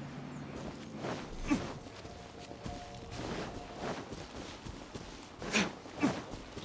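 Footsteps swish through dry grass.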